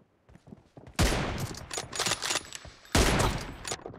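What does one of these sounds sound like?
A rifle fires rapid, loud shots.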